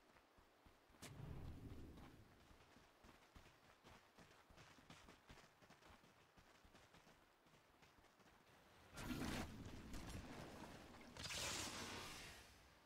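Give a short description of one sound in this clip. Game combat effects burst with loud whooshes and crackles.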